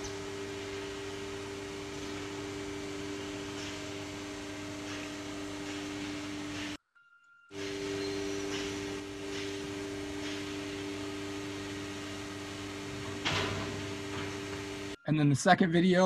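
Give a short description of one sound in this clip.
A machine hums steadily and loudly.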